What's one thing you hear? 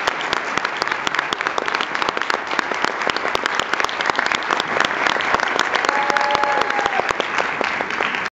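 An audience claps and applauds loudly in a large hall.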